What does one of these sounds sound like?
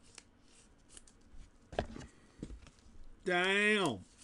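A plastic wrapper crinkles as it is handled.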